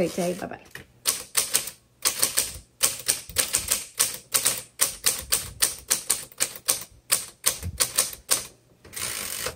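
Typewriter keys clack sharply in a quick, uneven rhythm.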